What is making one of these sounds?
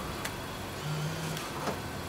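A paper parking ticket is pulled from the slot of a ticket dispenser.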